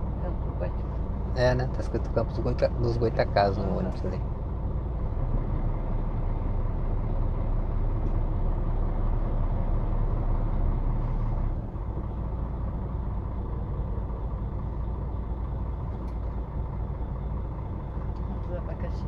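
A vehicle engine rumbles steadily while driving on a road.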